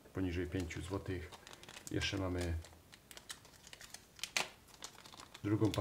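A small plastic bag crinkles as hands open it.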